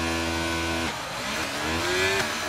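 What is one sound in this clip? A racing car engine revs up, its pitch rising as it pulls away.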